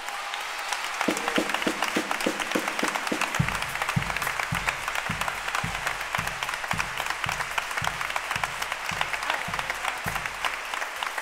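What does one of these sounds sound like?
A drum beats in a steady rhythm.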